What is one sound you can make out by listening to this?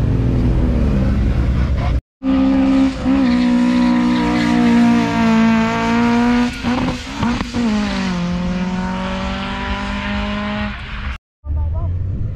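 A car accelerates hard into the distance, its engine roaring and rising through gear changes.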